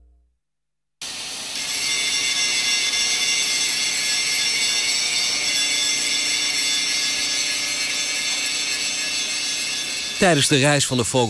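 A hydraulic machine hums and hisses steadily.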